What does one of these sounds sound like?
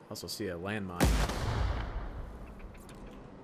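A gun fires a single loud shot that booms and fades.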